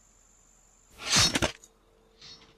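A game menu plays a short, loud whooshing effect as a selection is made.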